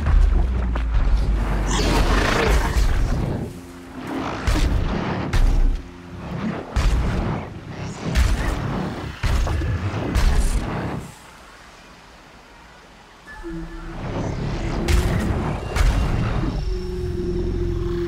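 Heavy metallic footsteps thud close by as a large machine stomps around.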